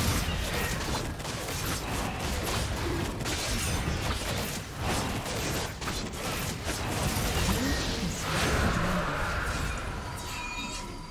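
Magic spell effects crackle and boom in a fast fantasy battle.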